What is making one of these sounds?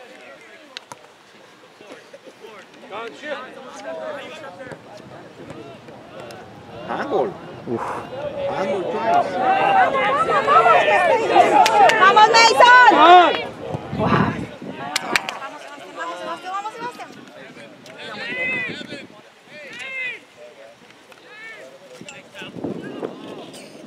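Young players shout to each other across an open field, growing loud and excited at times.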